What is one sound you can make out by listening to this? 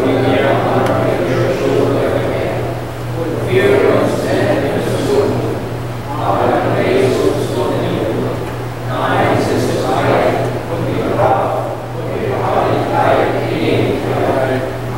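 A congregation of men and women sings a hymn together in a large echoing hall.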